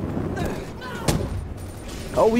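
An explosion booms and crackles with fire.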